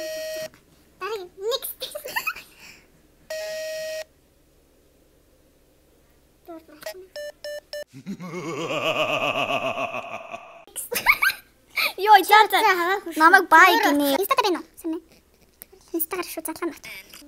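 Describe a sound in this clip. A teenage girl speaks with animation close by.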